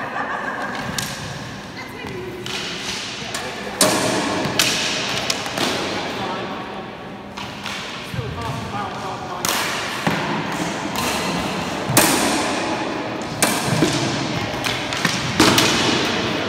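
Practice swords clack together sharply in a large echoing hall.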